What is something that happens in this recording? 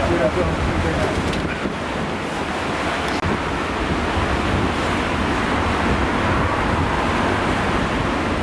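Strong wind blusters across open water.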